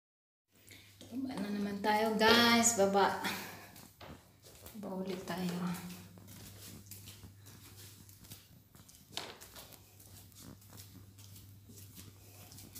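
Footsteps tread down hard stairs.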